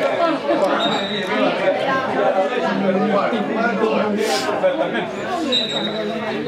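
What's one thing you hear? Young players call out to each other across an open outdoor pitch.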